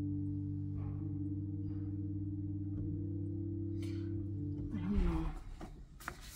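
An organ holds a sustained chord that then stops.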